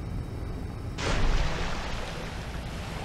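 Thrusters blast with a loud rush.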